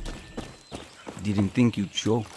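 A man speaks casually, close by.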